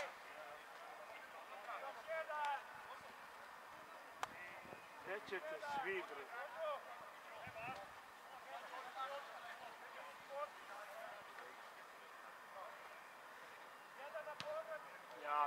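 Spectators in the stands, men and women, chat and call out nearby, outdoors.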